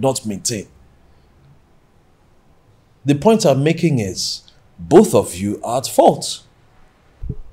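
A middle-aged man speaks calmly and close by, with pauses.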